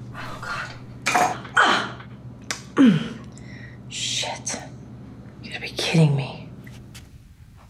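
A young woman breathes heavily and gasps.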